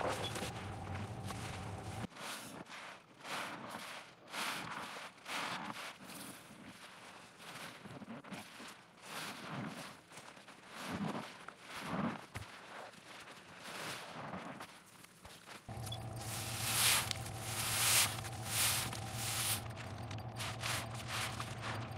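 A wet sponge squelches and squishes in soapy foam, close up.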